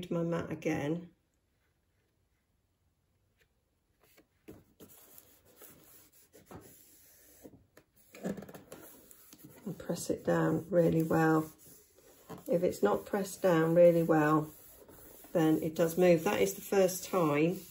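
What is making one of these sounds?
A small tool scrapes lightly across paper.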